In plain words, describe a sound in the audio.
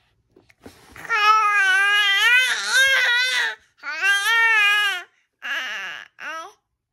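A baby cries out loudly in long wailing bursts close by.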